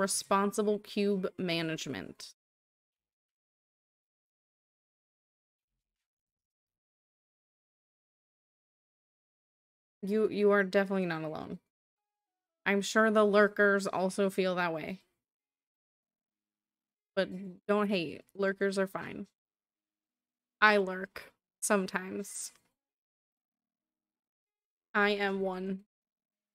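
A woman talks with animation into a close microphone, in short bursts with pauses.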